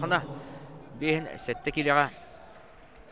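A man speaks loudly over a loudspeaker in a large echoing hall.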